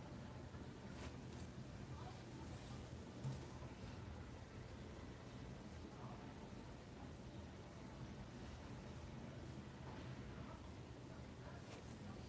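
A paintbrush brushes softly on fabric.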